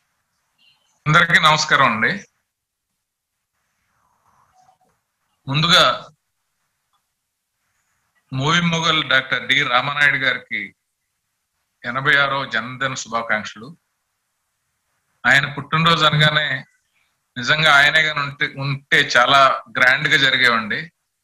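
A middle-aged man speaks calmly in short phrases over an online call, with pauses between.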